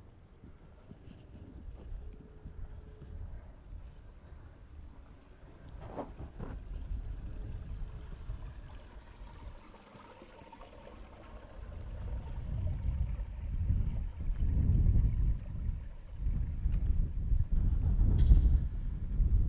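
Wind blows outdoors, buffeting loudly at times.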